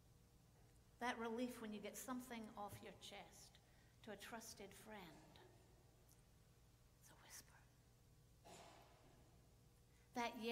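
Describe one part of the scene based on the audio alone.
An older woman speaks calmly into a microphone, with pauses.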